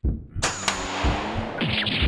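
An arrow whooshes and thuds into wood.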